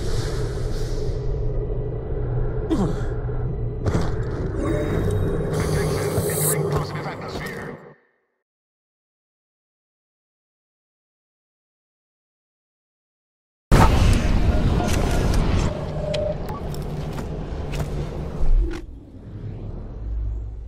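A video game plays, with rumbling, ambient sound effects.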